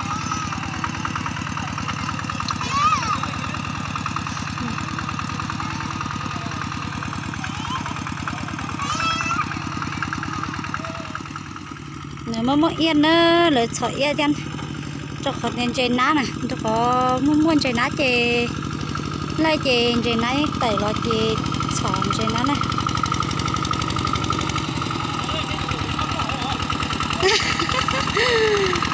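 A walking tractor engine chugs steadily nearby.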